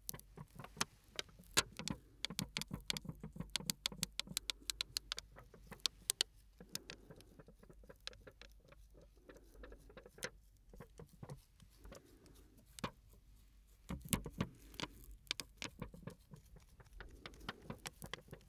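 A man crinkles and taps a small object close to a microphone, with quick crisp clicks.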